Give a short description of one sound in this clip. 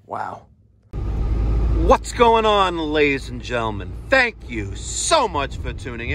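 Tyres rumble on a road.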